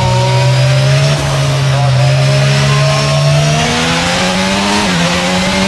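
A racing car engine whines at high revs, its pitch rising and dipping with gear changes.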